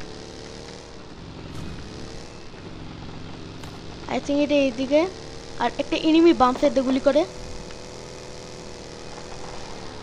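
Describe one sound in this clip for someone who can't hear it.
A buggy engine drones steadily.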